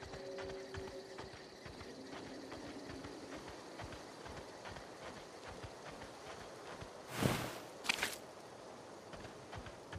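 Footsteps crunch over rough ground at a steady pace.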